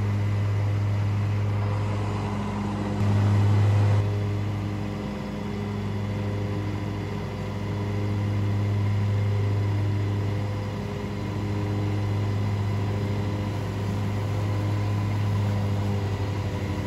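A zero-turn riding mower engine drones steadily while cutting grass.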